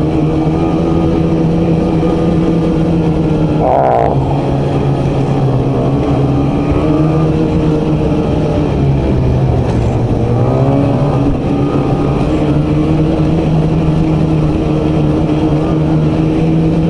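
A snowmobile engine drones steadily up close, its pitch rising and falling with the throttle.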